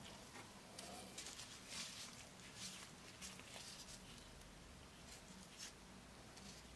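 A cloth rustles as fingers wipe a lens.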